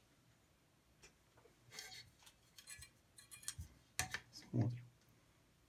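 Metal parts click and clank as they are adjusted by hand.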